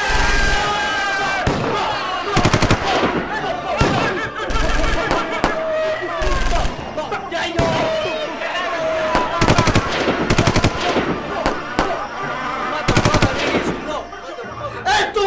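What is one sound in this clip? A group of young men cheer and shout excitedly close by.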